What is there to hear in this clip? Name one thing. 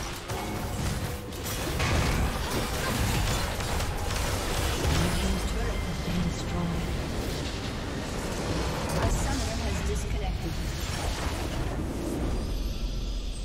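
Spell blasts and clashing weapons burst in a busy fight.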